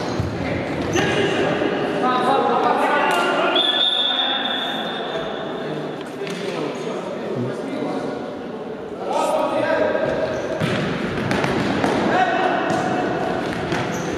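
A ball thuds against the floor and is kicked.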